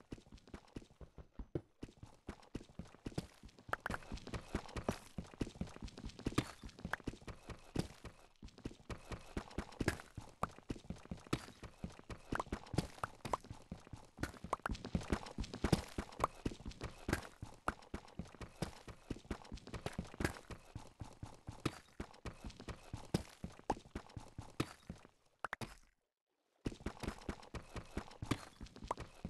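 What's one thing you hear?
A pickaxe chips rapidly at stone blocks, with short crunching knocks.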